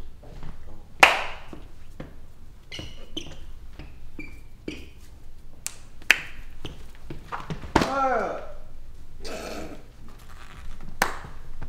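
Hands slap together in sharp claps.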